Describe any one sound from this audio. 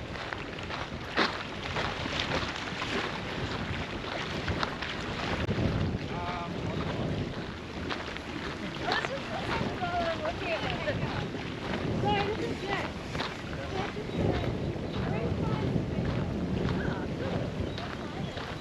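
Footsteps crunch on a gravel path.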